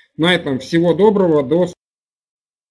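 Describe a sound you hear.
A man speaks through a headset microphone over an online call.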